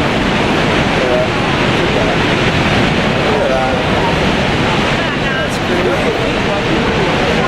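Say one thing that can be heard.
A man talks calmly and close up.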